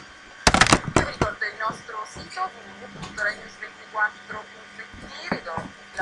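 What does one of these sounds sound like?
A woman reads out the news calmly through a small loudspeaker.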